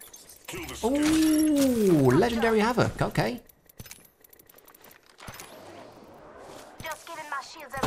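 Short interface clicks and chimes sound.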